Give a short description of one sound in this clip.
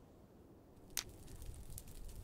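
A flint and steel strikes with a short scrape.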